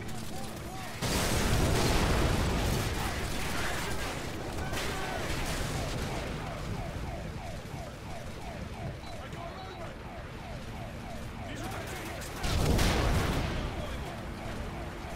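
Gunfire and explosions from a video game boom loudly.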